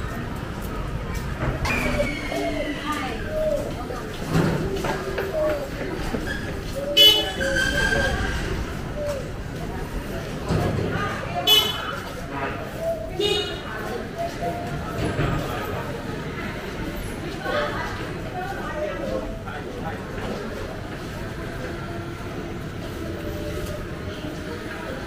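Footsteps scuff on pavement close by.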